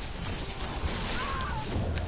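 Gunshots ring out from a video game.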